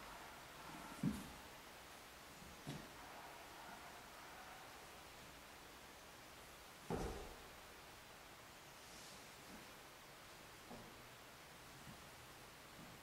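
Feet thud now and then on a wooden floor in a large echoing hall.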